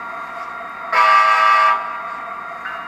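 A model locomotive's horn blasts once.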